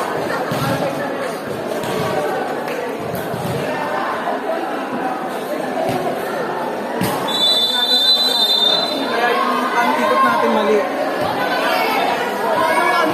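Young women talk over one another close by.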